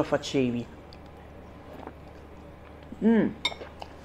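A woman slurps noodles.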